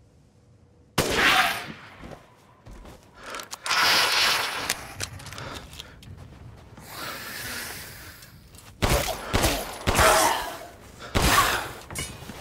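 Loud gunshots ring out, echoing sharply.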